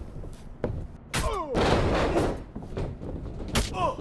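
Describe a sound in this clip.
A body thuds heavily onto a wrestling ring mat.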